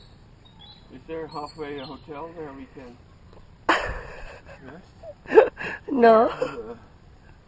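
An older man speaks nearby, outdoors.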